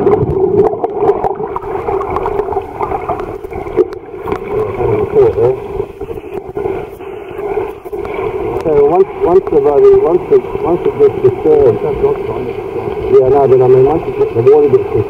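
Water churns and bubbles from a swimmer's kicks, heard muffled underwater.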